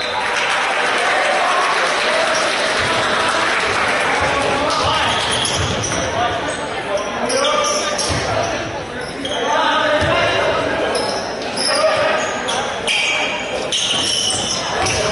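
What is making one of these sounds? Young men shout to each other across the court.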